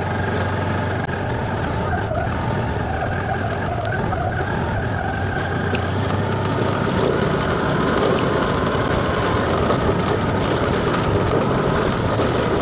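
A scooter engine hums steadily while riding.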